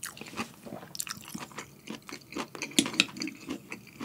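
Chopsticks tap against a ceramic bowl.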